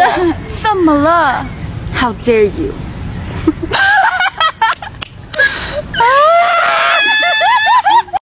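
Young women talk excitedly close to a phone microphone.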